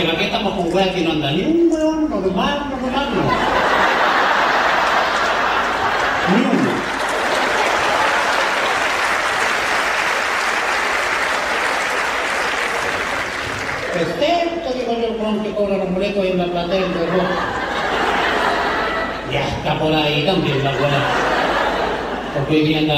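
An elderly man talks animatedly into a microphone over loudspeakers.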